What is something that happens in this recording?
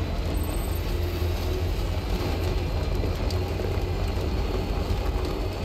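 An engine rumbles steadily as a vehicle drives.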